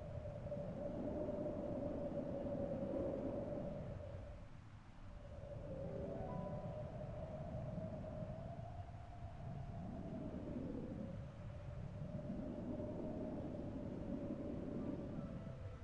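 Wind gusts and swells outdoors.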